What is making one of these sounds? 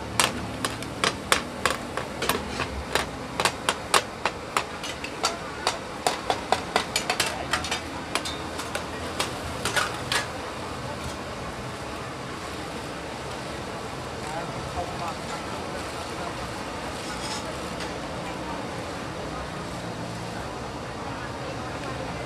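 Batter sizzles on hot pans.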